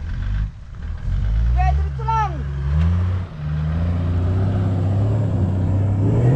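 An off-road truck engine revs and rumbles nearby.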